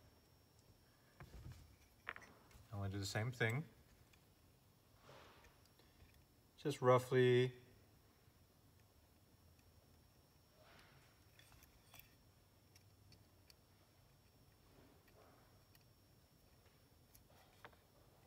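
Small plastic parts click and rattle as they are fitted together.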